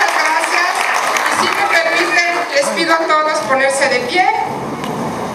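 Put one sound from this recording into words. A woman speaks through loudspeakers in a large echoing hall.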